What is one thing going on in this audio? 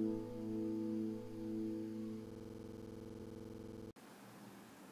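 An electric guitar plays sustained notes that ring out and fade.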